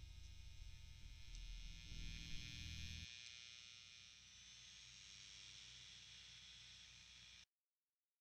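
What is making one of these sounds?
Loud static hisses and crackles.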